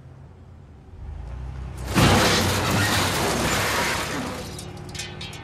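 A car bumps into another car with a loud crunch.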